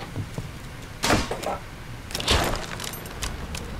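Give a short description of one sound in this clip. A door is struck with heavy thuds until it bursts open.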